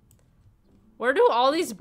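A young woman talks and exclaims close to a microphone.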